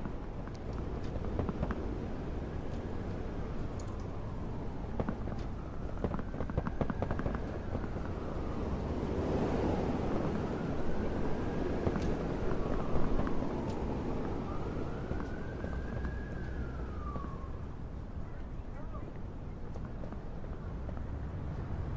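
A small buggy engine rumbles steadily.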